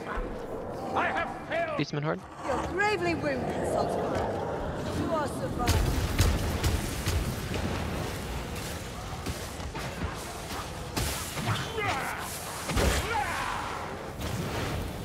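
Creatures screech and snarl nearby.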